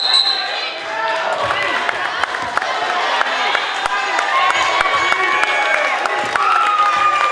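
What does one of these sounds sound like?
A crowd cheers and chatters.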